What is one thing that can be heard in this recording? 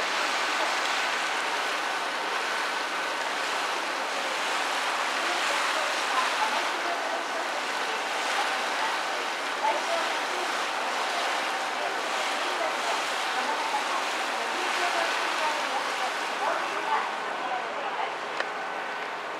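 Water laps and ripples gently across an open lake.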